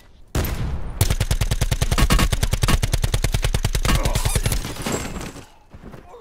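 An automatic rifle fires rapid, loud bursts.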